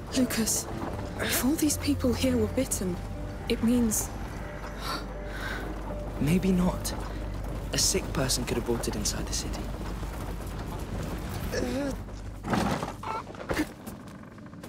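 A heavy wooden cart rumbles and scrapes as it is pushed across a floor.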